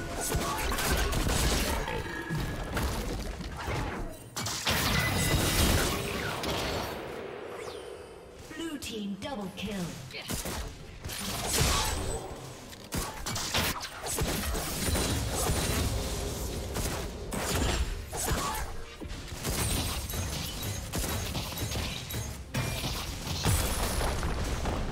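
Game spell effects and attacks crackle and burst in quick succession.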